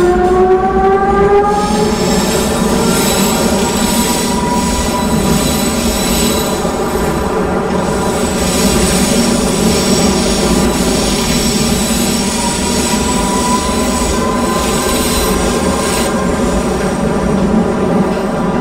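An electric train motor whines, rising in pitch at first.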